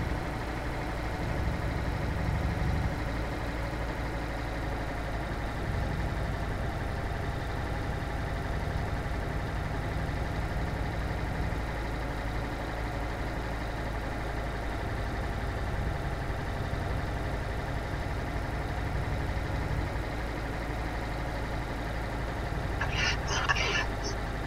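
A truck engine drones steadily at a low pitch while driving.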